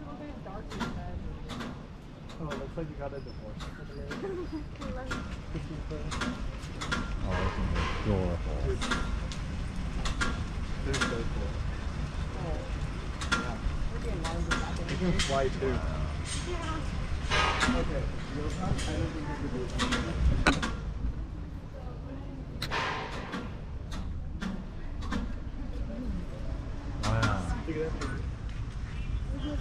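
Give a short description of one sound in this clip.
Adults and children chatter nearby outdoors.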